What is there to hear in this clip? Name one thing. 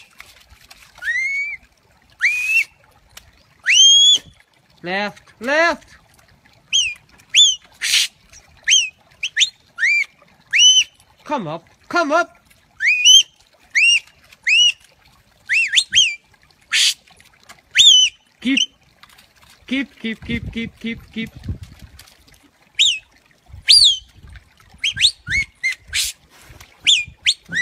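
A dog yelps with short, high cries, again and again.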